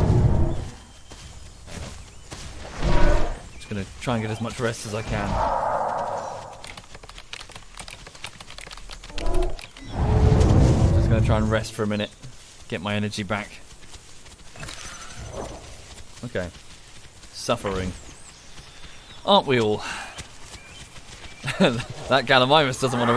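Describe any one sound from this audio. A large dinosaur lets out low, honking calls.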